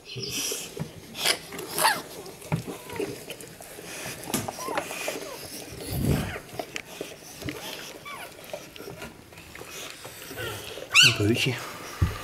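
Fabric rustles as a dog is handled close by.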